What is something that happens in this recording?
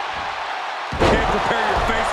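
A heavy thud of a body hitting a wrestling mat.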